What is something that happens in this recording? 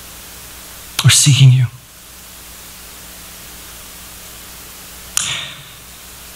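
A man speaks briefly through a microphone in a large room.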